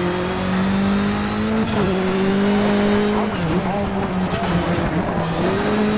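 Tyres skid and scrabble over loose gravel.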